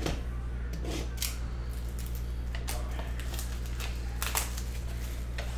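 Plastic wrap crinkles and tears.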